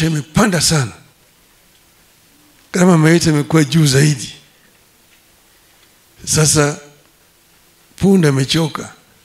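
An elderly man speaks slowly and firmly into a microphone over a loudspeaker, pausing between phrases.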